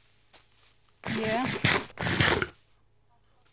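A creature munches and chews food.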